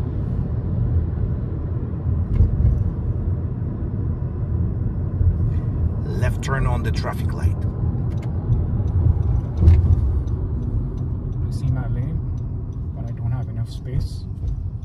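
A car engine and tyres rumble steadily from inside a moving car.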